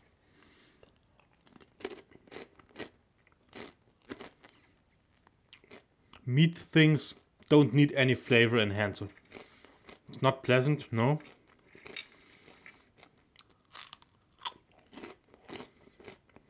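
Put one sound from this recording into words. A young man chews crunchy food loudly and close up.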